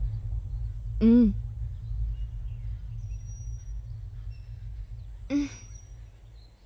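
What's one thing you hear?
A woman cries out in distress.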